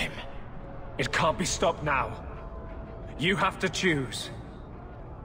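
A man speaks calmly in reply.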